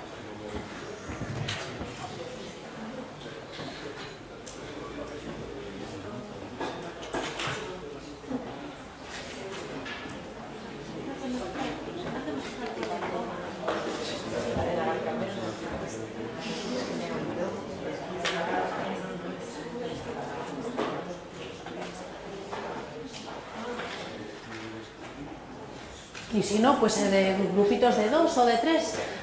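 A woman speaks calmly through a microphone over loudspeakers in a large room.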